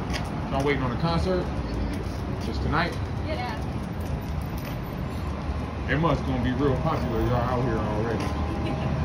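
Young women talk casually nearby.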